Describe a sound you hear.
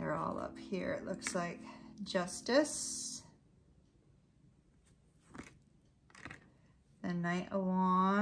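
A card is laid down with a soft tap.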